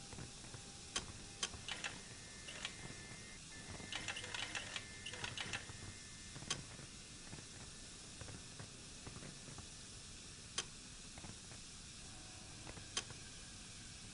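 A metal dial clicks sharply as it turns.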